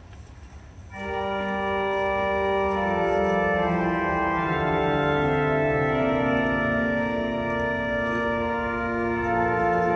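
A group of men sings slowly, echoing through a large hall.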